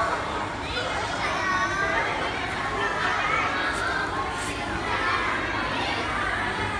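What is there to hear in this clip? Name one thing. A crowd of children and adults chatter and shout nearby.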